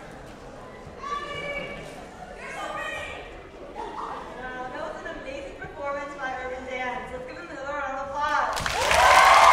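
A young woman speaks with animation into a microphone, echoing through a large hall.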